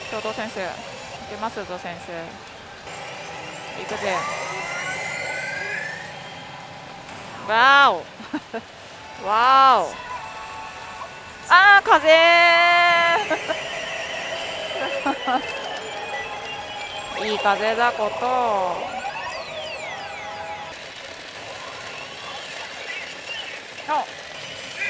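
A pachinko machine plays loud electronic music and sound effects.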